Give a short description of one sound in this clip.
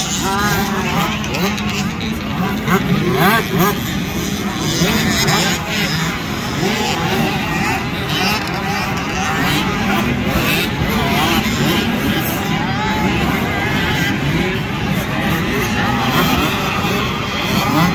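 Dirt bike engines whine and rev loudly as the bikes climb and jump.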